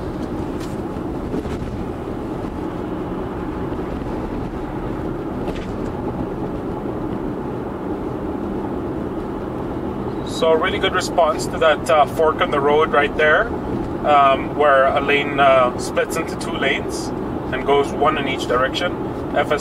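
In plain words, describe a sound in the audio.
Tyres hum steadily on a road as a car drives along.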